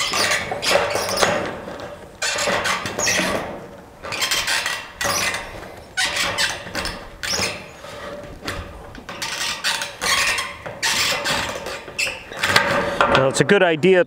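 Tin snips cut through sheet metal with sharp crunching snips.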